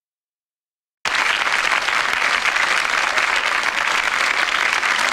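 A large audience applauds loudly.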